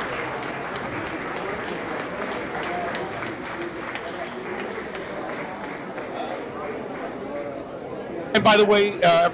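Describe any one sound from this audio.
A crowd chatters and murmurs.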